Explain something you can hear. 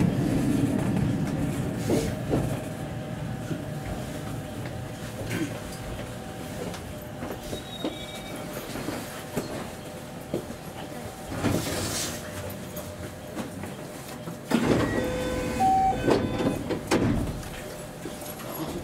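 An electric commuter train rolls along the track, heard from inside the cab.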